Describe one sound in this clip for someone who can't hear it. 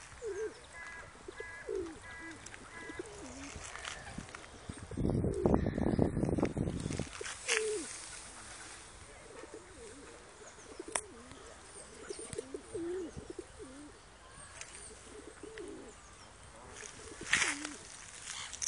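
Geese honk repeatedly nearby.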